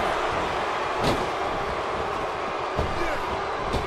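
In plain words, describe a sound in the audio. Heavy thuds of bodies hitting a wrestling ring sound now and then.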